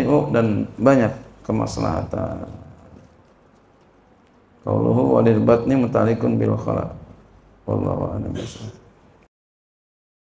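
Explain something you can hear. A man speaks calmly into a close microphone, in a slightly echoing room.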